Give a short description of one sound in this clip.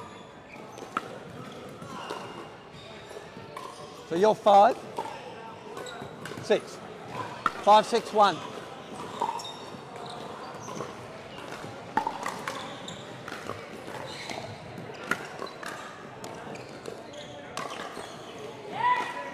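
Paddles pop against a plastic ball in a large echoing hall.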